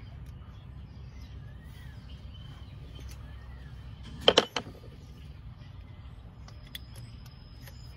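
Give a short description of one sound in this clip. Metal parts clink and knock as hands work on a bicycle engine.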